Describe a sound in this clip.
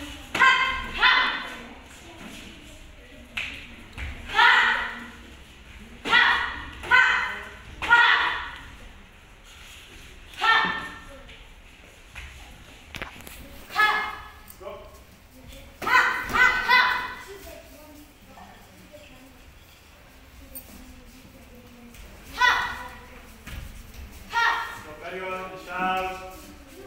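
A young woman shouts sharply in short bursts, echoing in a large hall.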